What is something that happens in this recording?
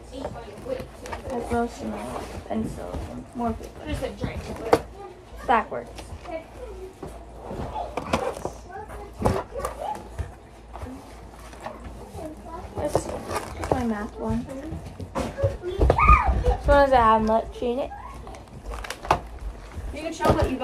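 A plastic binder creaks and flaps as it is handled.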